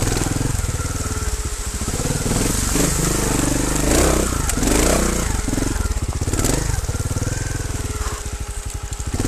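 Bicycle tyres rattle and crunch over a rocky trail.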